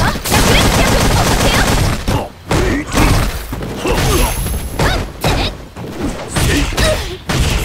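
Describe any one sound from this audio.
Energy blasts whoosh and burst.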